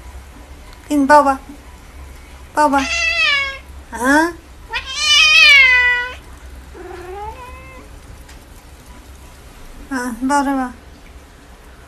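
A cat meows loudly and repeatedly, close by.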